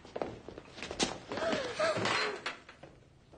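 A young boy exclaims in surprise.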